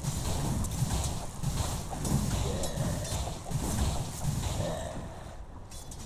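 Game spell effects crackle and whoosh during a fight.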